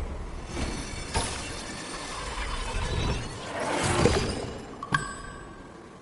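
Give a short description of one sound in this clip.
A magical shimmer swells and whooshes.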